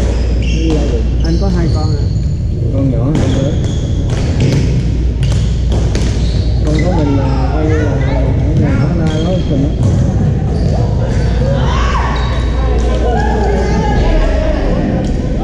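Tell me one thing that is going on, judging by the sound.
Paddles hit a plastic ball with sharp pops in a large echoing hall.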